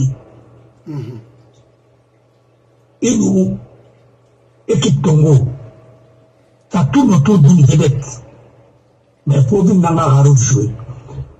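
An elderly man speaks closely into a microphone in short, emphatic bursts with pauses between.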